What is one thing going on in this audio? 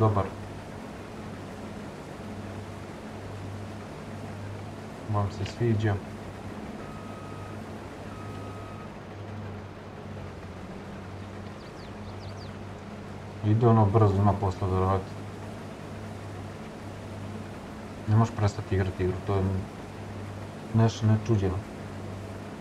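A young man speaks casually into a close microphone in short bursts.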